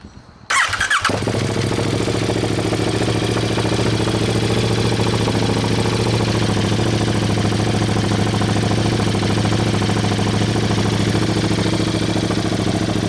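A motorcycle engine idles loudly with a deep, steady, throaty rumble.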